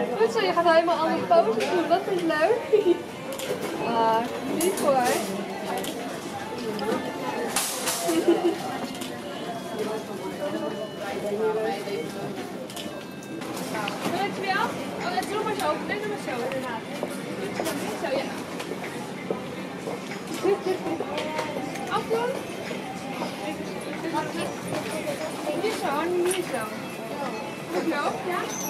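A young girl talks and laughs nearby.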